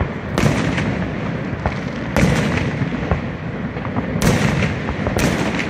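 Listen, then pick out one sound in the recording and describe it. Fireworks bang and boom loudly outdoors.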